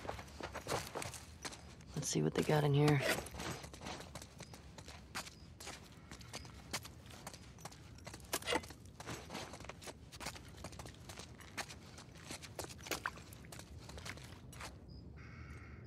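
Footsteps and rummaging clatter on a hard floor.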